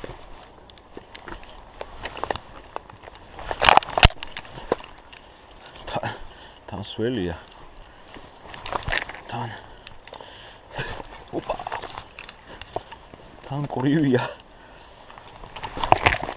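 Footsteps scuff and tap on rough stone.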